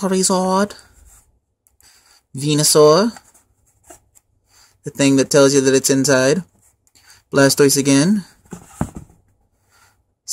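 Plastic wrapping crinkles softly on a tin turned in the hands.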